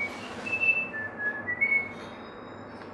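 A cat meows loudly close by.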